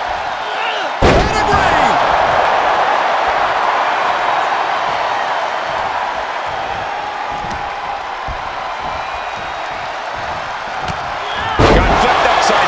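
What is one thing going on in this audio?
A heavy body slams onto a table with a loud crash.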